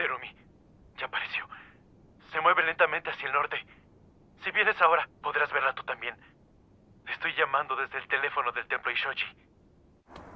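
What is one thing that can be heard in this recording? A man speaks calmly into a telephone close by.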